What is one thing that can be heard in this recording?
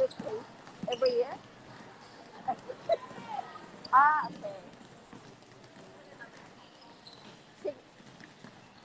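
Children shout and call out nearby.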